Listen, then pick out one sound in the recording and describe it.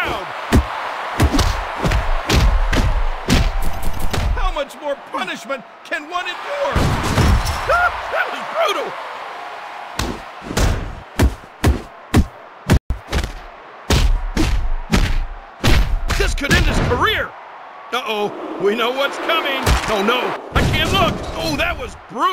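Punches and body slams thud in a wrestling video game.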